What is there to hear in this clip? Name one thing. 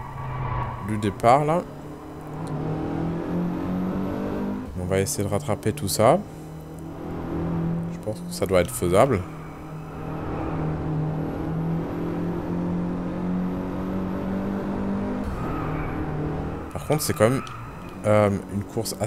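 A car engine revs sharply up and down in short bursts as gears change.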